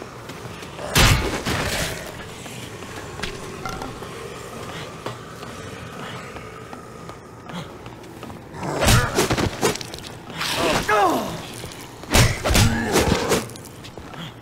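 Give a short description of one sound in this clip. Heavy blows thud into bodies.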